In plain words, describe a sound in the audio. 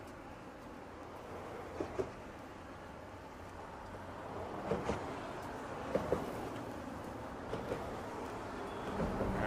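Cars drive past with a steady rush of tyres on the road.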